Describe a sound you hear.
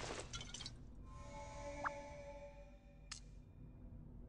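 A bright sparkling chime rings out.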